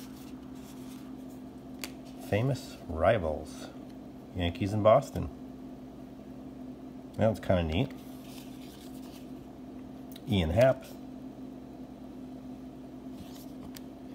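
Stiff cards rustle and slide against each other as hands sort them.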